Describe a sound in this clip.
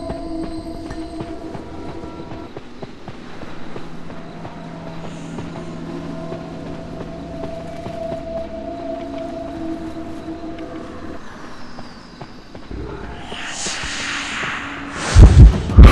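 Quick footsteps patter along the ground.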